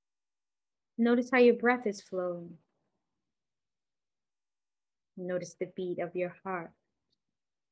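A woman speaks calmly and softly into a microphone, in two short phrases.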